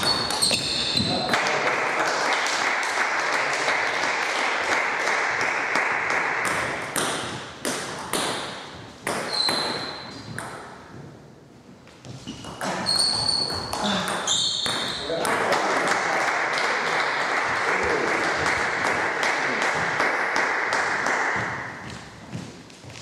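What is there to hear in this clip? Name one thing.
A table tennis ball clicks back and forth off paddles and the table.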